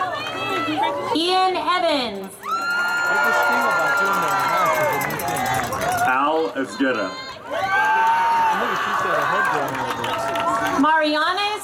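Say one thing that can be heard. A man reads out over a loudspeaker, outdoors.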